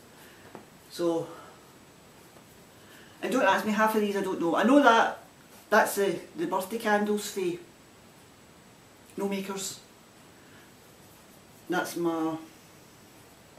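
A middle-aged woman talks calmly and close by, in short bursts with pauses.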